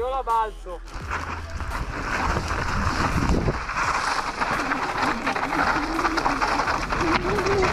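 Bike tyres crunch over loose stones.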